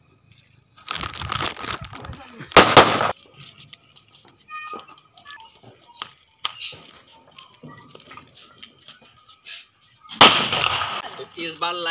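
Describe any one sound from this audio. Firecrackers burst and crackle nearby.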